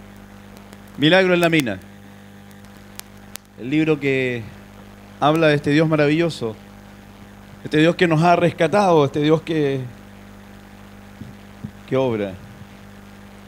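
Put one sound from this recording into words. A man speaks slowly and with feeling through a microphone and loudspeakers, in short phrases with pauses.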